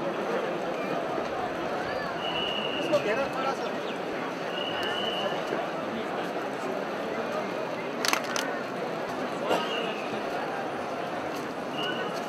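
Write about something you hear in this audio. A crowd murmurs quietly nearby.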